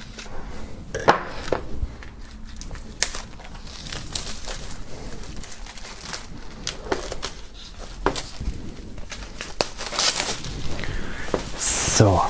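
Plastic wrap crinkles and rustles as it is pulled off.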